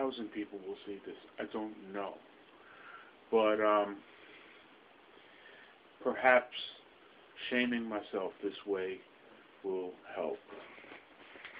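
An older man speaks calmly and close up into a microphone.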